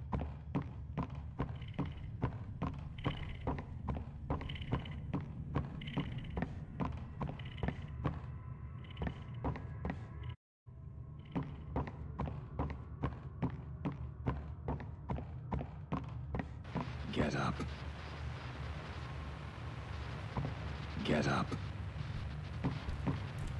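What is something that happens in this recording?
Footsteps thud steadily on a hard floor, indoors.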